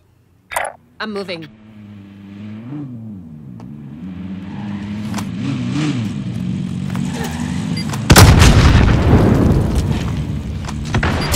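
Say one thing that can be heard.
A vehicle engine hums and revs up and down.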